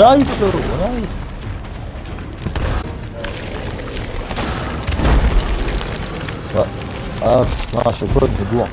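A large creature roars and growls.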